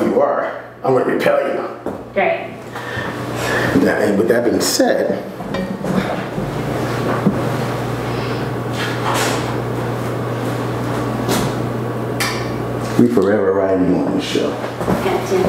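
A middle-aged man talks with animation into a nearby microphone.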